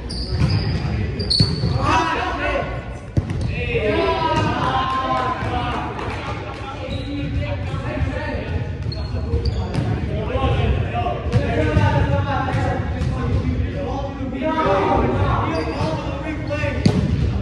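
A volleyball thumps off players' arms.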